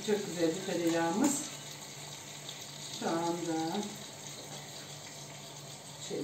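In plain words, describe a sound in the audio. Food sizzles softly in a pot.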